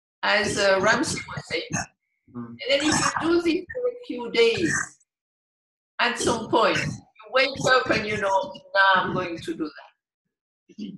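An elderly woman speaks with animation over an online call.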